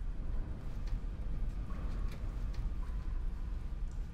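Footsteps walk slowly across a hard floor.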